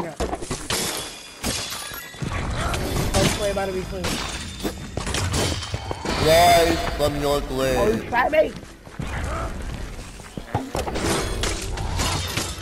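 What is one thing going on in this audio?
Swords clash and strike in quick fighting.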